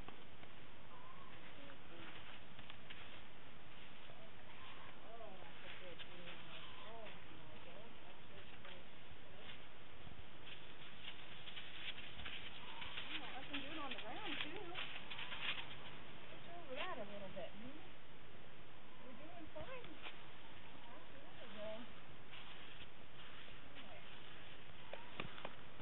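A woman speaks calmly to a horse.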